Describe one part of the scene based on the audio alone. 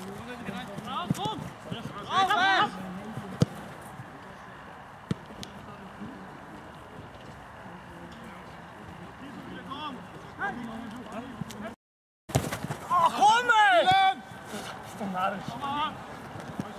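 Young men shout across an outdoor field.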